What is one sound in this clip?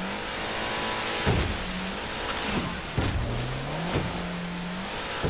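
Water splashes and rushes along a speeding boat.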